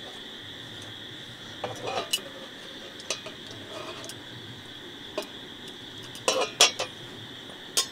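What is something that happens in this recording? A gas canister is screwed onto a stove with metallic scrapes.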